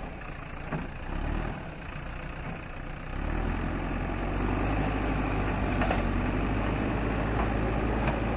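A digger bucket scrapes through loose soil.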